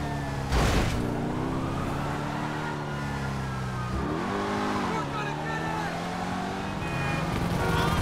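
A sports car engine roars steadily, revving up briefly and settling back.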